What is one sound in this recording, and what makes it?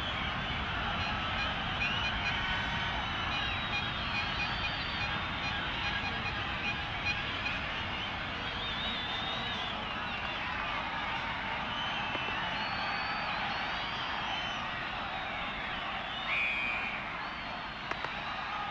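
A large stadium crowd roars and whistles steadily.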